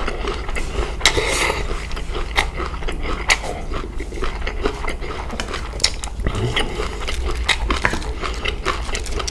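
A man chews food wetly close to a microphone.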